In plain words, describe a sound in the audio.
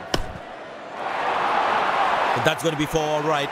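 A crowd cheers loudly in a stadium.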